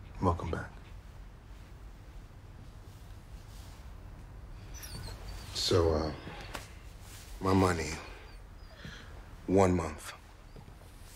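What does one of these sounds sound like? A woman speaks quietly in short, tense phrases close by.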